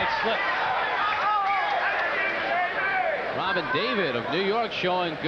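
A crowd murmurs and cheers in a large hall.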